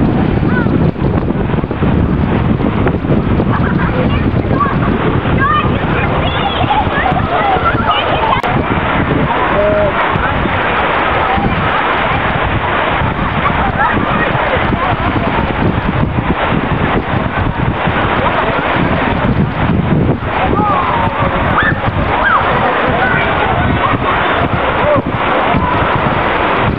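Water splashes as a swimmer slides through the current.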